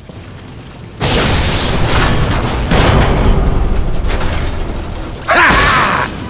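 A heavy gun fires in a loud, rapid burst.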